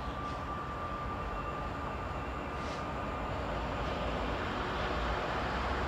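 A train approaches in the distance, its hum growing louder.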